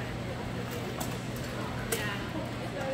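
Rattan swords strike against shields and helmets in an echoing hall.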